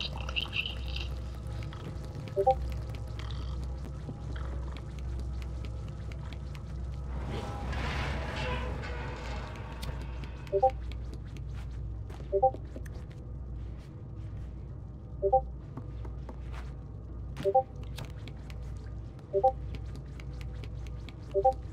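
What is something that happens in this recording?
Small quick footsteps patter on a wooden floor.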